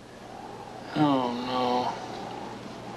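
A young man groans softly in his sleep.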